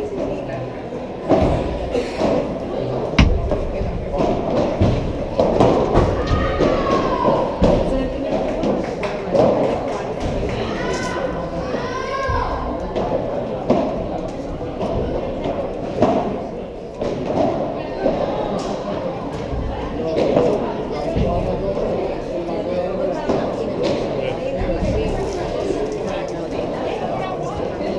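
Footsteps squeak and shuffle on the court.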